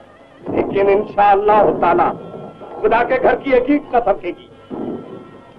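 A man speaks forcefully.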